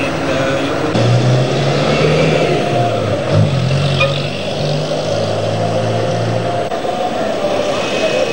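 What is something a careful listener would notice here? A bus engine rumbles and hums in street traffic.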